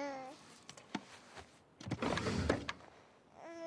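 Objects rattle as a drawer is rummaged through.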